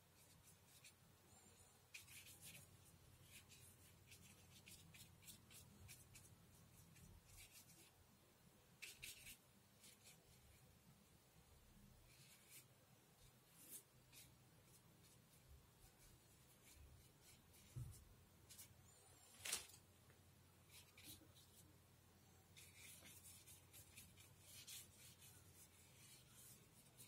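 A paintbrush softly scratches and dabs on paper.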